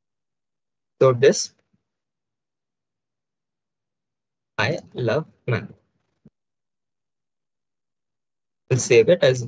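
A young man speaks calmly into a close microphone, in short bursts.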